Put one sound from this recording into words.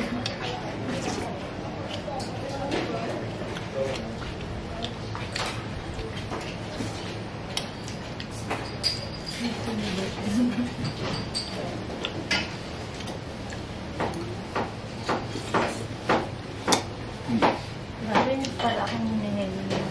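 A young man chews and slurps food noisily.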